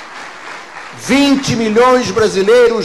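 An elderly man speaks into a microphone, heard through loudspeakers.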